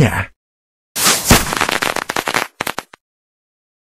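A cheerful burst of celebratory chimes and pops rings out.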